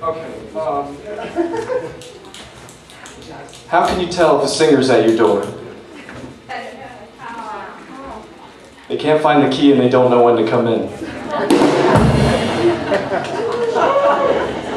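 A young man sings into a microphone, amplified over loudspeakers.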